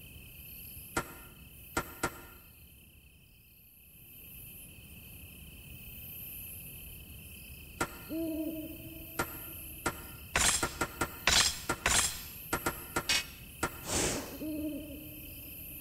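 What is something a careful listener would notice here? Short electronic menu beeps sound as choices are made.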